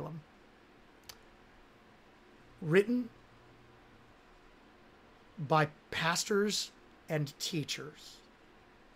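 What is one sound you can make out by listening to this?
A man speaks calmly and with animation close to a microphone, in short bursts with pauses.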